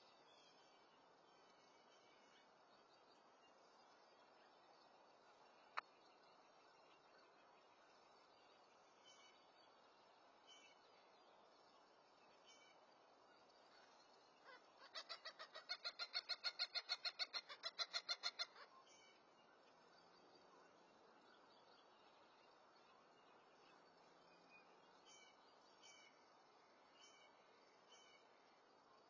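A light breeze blows outdoors.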